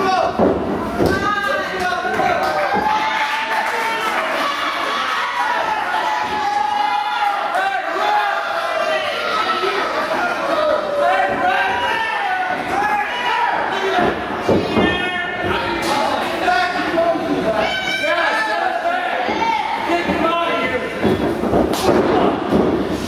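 Bodies thud on the wrestling ring mat.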